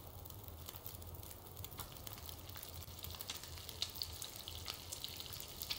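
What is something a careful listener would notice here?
A campfire crackles and pops steadily.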